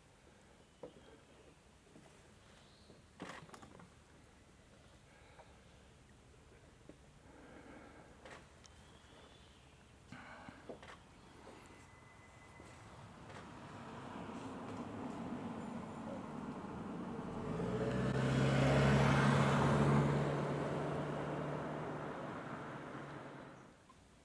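A small animal nibbles berries with faint crunching sounds.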